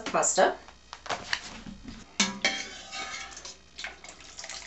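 Pasta tumbles from a metal strainer into a pan of sauce.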